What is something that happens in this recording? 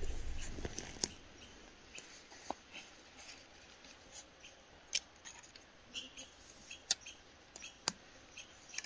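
Gear clicks and rattles softly as a man handles a bow.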